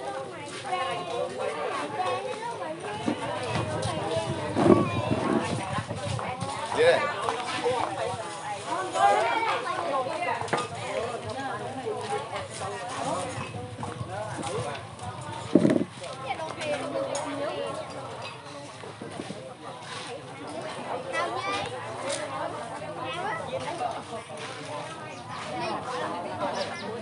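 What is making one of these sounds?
A crowd of men, women and children chatter all around outdoors.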